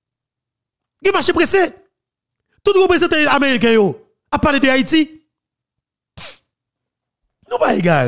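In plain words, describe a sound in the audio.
A man speaks with animation, close into a microphone.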